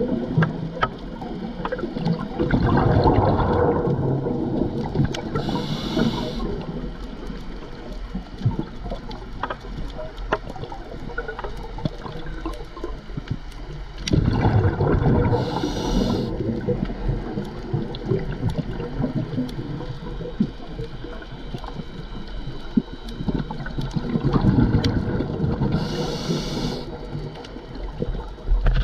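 Faint clicks and crackles come from a coral reef underwater.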